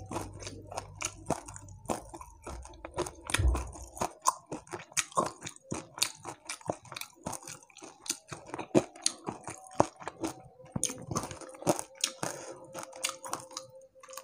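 A man chews crunchy fried food loudly and close to a microphone.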